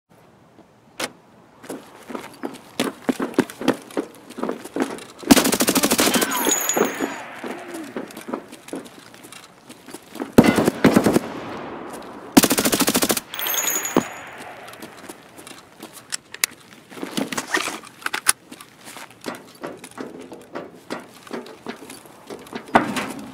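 Footsteps scuff on a hard concrete surface.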